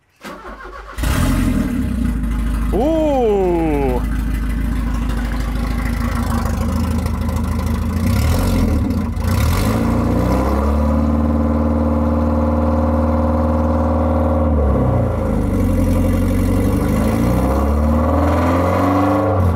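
A car engine runs and revs.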